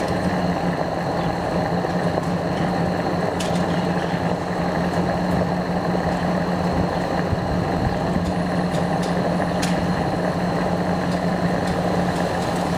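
A fuel pump hums steadily as fuel flows.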